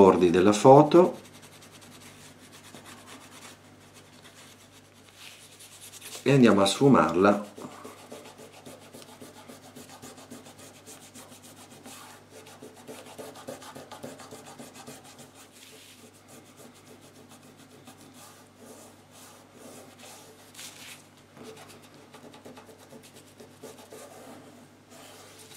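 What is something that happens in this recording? Fingers rub and press a small card against rustling paper.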